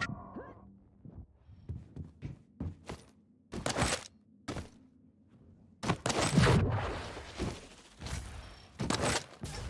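Footsteps thud on stone in quick succession.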